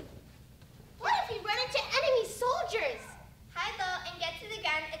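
Children shout and sing out in high voices in an echoing hall.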